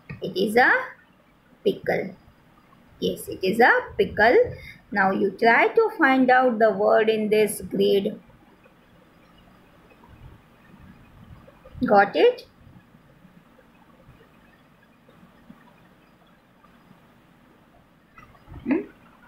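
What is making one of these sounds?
A middle-aged woman speaks calmly over an online call, with pauses.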